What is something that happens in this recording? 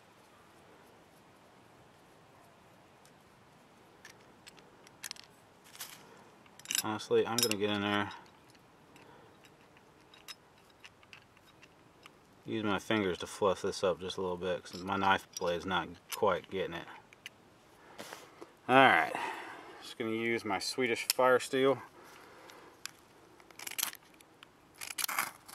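A small metal tin clicks and scrapes as it is handled.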